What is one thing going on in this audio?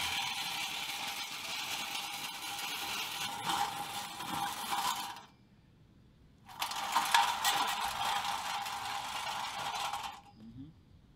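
Rubber tank treads rumble and whir over pavement.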